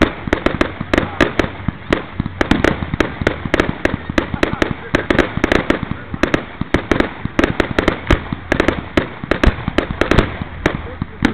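Fireworks fizz and hiss steadily.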